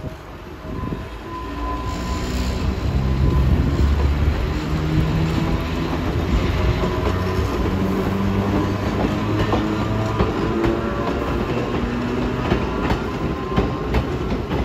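An electric train motor hums and whines steadily.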